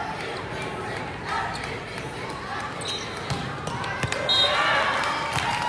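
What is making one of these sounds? A crowd of players and spectators chatters and calls out in a large echoing hall.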